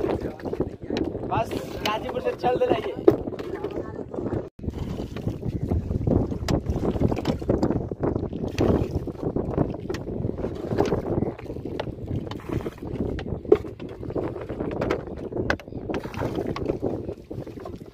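A pole splashes and swishes in water as a boat is pushed along.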